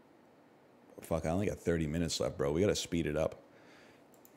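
A man speaks briefly and calmly into a headset microphone.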